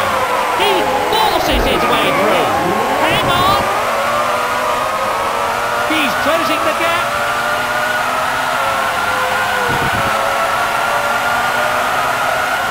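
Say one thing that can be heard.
A racing car engine whines at high revs, its pitch slowly rising.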